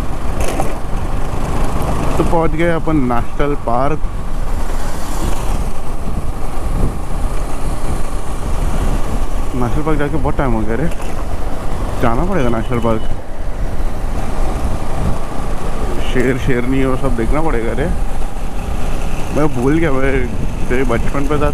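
A motorcycle engine hums steadily at speed.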